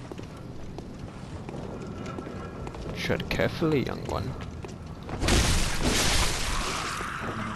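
Footsteps run over cobblestones.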